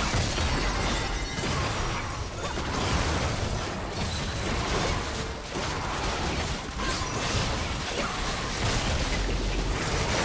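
Game spell effects crackle and whoosh during a battle.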